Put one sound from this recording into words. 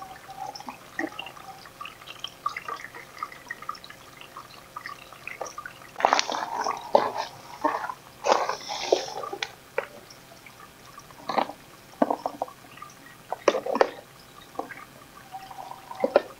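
Plastic plant pots click and rattle as they are handled.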